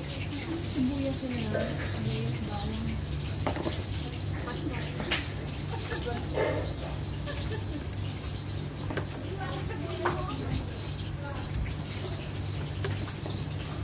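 An air conditioner hums steadily nearby.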